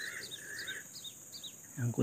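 Small birds chirp in the trees.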